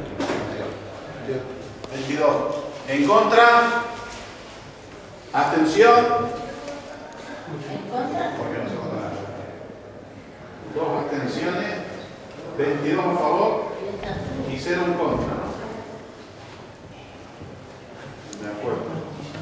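A man speaks loudly with animation.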